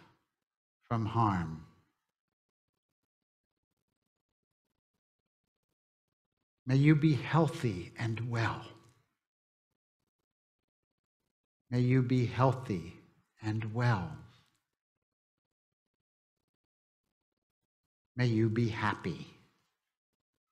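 An elderly man speaks slowly and calmly into a microphone, with long pauses.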